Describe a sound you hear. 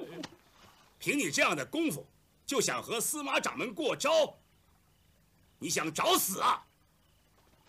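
An elderly man speaks sternly and with force.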